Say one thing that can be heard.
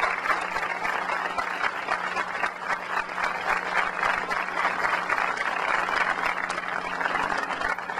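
A large crowd applauds steadily outdoors.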